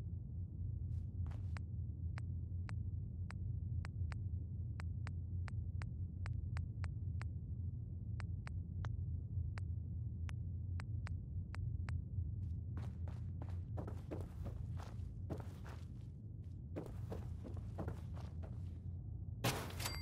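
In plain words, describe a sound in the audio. Short menu clicks tick quickly as items are scrolled through.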